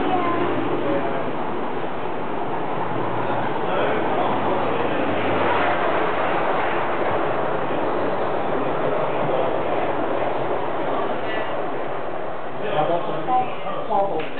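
A model train rumbles steadily along its track.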